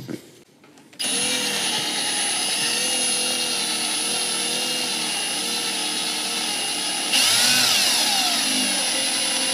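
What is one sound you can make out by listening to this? A cordless drill whines steadily as it bores into thin sheet metal.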